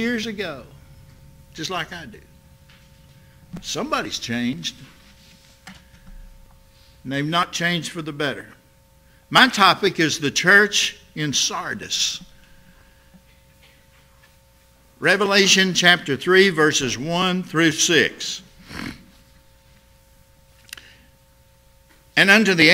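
An elderly man speaks slowly and deliberately through a microphone, with pauses between phrases.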